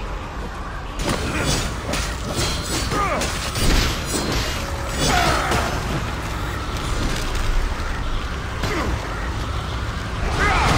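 Heavy blows thud and clang during a fight.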